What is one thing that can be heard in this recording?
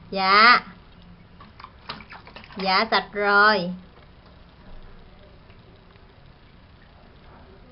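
Water splashes softly in a small bucket.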